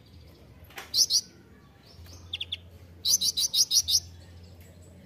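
A small bird chirps in sharp, rapid bursts close by.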